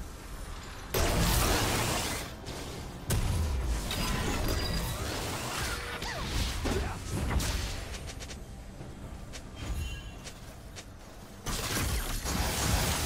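Game spell and weapon effects crackle and clash in bursts.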